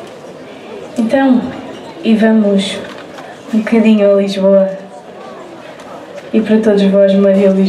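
A young woman sings loudly through a microphone and loudspeaker.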